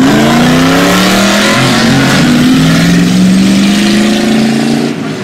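A car engine roars loudly, its pitch climbing as it accelerates hard nearby.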